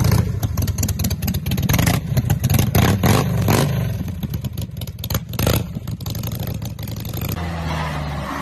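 A car engine rumbles loudly.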